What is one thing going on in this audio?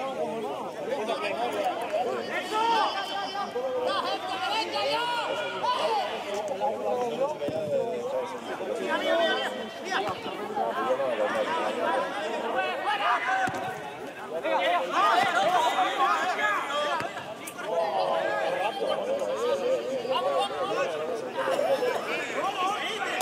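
Men shout and call out to each other across an open pitch outdoors.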